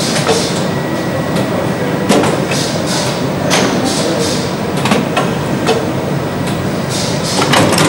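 A machine clatters and hums steadily.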